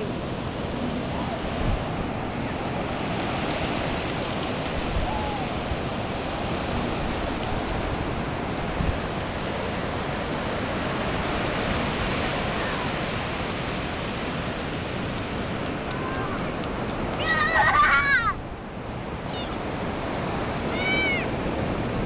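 Ocean waves wash and roar steadily onto the shore.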